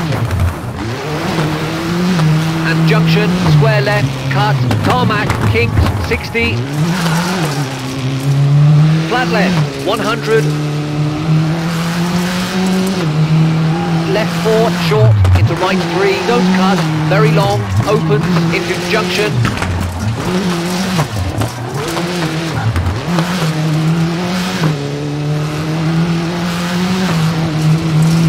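A rally car engine revs hard and rises and falls in pitch as the gears shift.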